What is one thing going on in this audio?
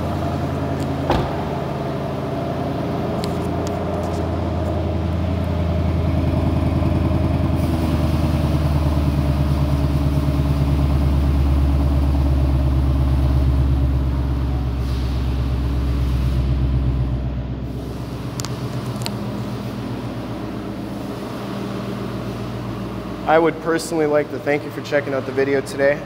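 A car engine idles with a deep, steady rumble that swells louder for a while and then eases off.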